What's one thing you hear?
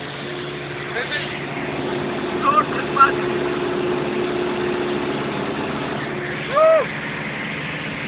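A young man speaks loudly close by over the engine noise.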